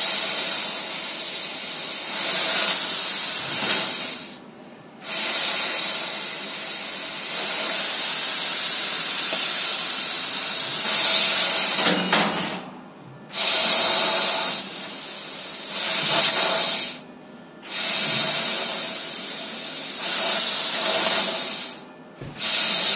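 A laser cutting machine hisses and whirs steadily as it cuts, stopping briefly now and then.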